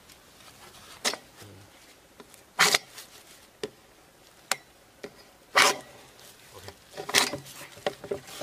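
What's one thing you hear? Plastic pipe knocks and clatters as two men handle it.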